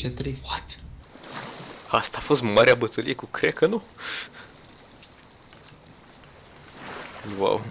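Waves splash and lap at the surface.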